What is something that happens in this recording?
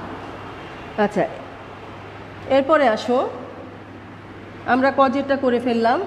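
A woman speaks calmly and closely, with pauses.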